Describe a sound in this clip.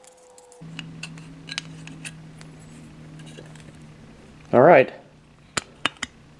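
A metal can lid clicks and scrapes as it is peeled open.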